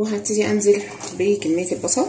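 A spatula stirs and scrapes through onions in a pan.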